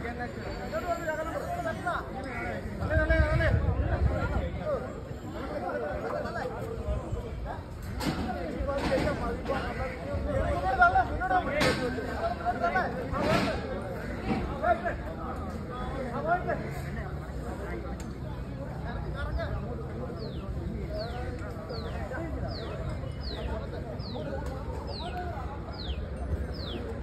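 A crowd of men talk and call out at a distance outdoors.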